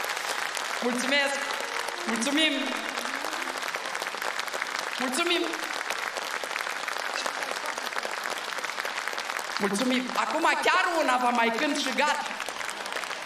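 A woman sings into a microphone over a loudspeaker system.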